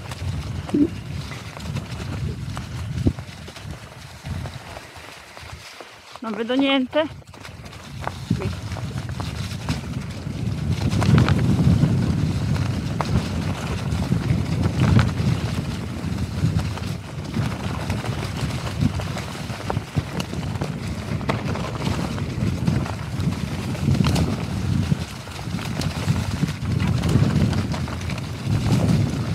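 Bicycle tyres roll and crunch over dry leaves on a dirt trail.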